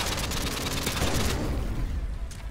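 Gunshots crack close by.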